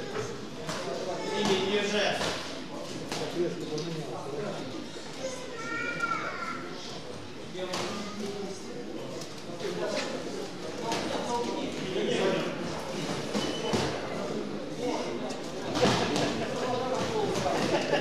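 Boxing gloves thud against a boxer's body and head.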